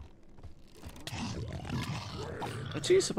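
A creature grunts close by.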